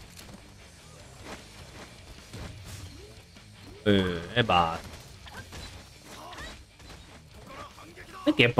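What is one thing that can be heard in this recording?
Heavy blows thud against bodies.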